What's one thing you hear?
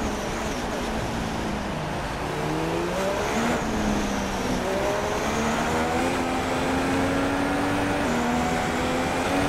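A Formula One car engine accelerates hard, shifting up through the gears.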